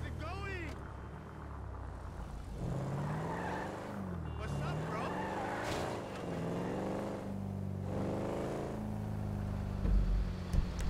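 A car engine revs and roars as it speeds along.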